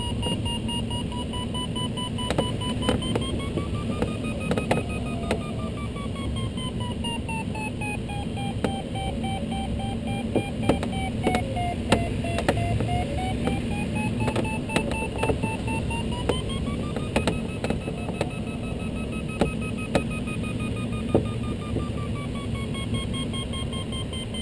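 A glider's flight instrument sounds a steady electronic tone that slowly rises and falls in pitch.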